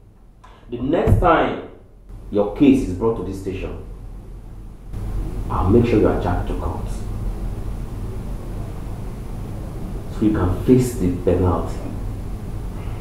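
A middle-aged man speaks forcefully and with animation, close by.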